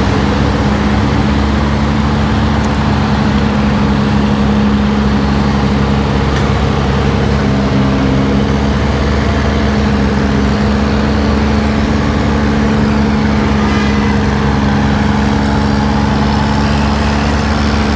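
A large diesel engine drones steadily nearby.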